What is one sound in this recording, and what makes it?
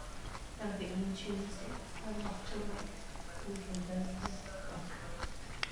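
An eggshell crackles softly as fingers peel it.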